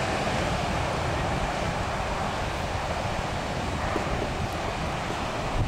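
Wind blows hard, rumbling outdoors.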